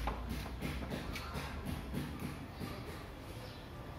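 Footsteps shuffle on a stone floor.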